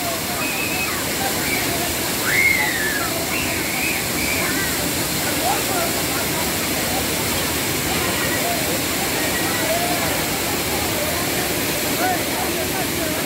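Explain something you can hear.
A crowd of men and boys shout and call out over the rushing water.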